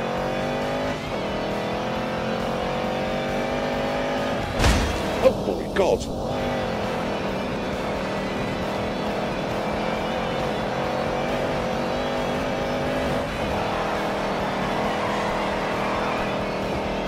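A car engine roars, rising and falling in pitch as it revs.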